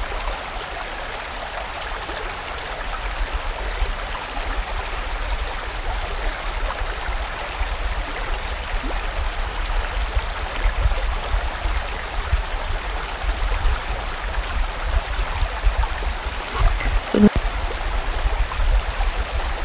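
A fast stream rushes and splashes over rocks.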